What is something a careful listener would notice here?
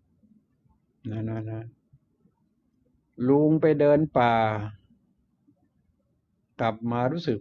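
An elderly man speaks calmly in short phrases.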